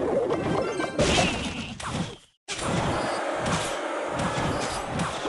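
Game sound effects chime and clash.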